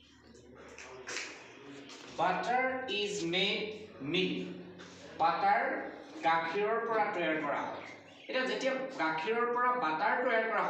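An older man speaks clearly and steadily, as if teaching, close by.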